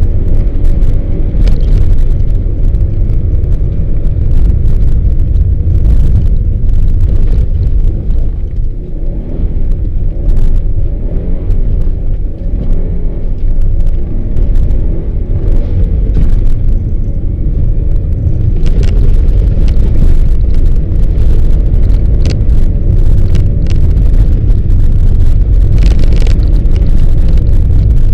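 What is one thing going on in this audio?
Tyres crunch and rumble over packed snow.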